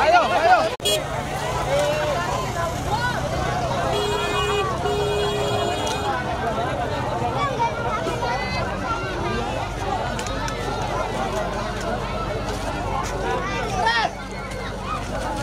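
A large outdoor crowd chatters loudly all around.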